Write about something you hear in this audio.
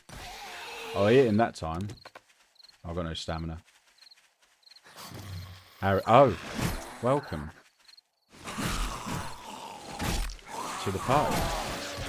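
A zombie groans and growls nearby.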